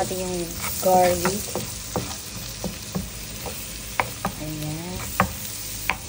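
Butter sizzles and bubbles in a hot pan.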